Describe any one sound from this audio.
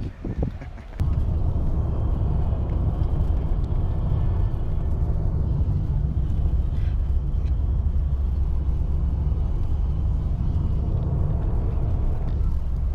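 A car's engine and road noise rumble steadily from inside the car.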